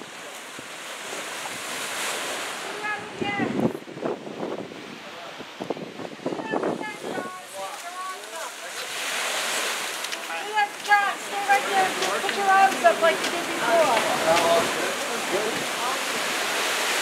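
Several adults talk nearby outdoors.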